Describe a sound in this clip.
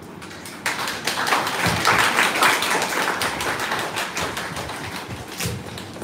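A small group applauds in a room.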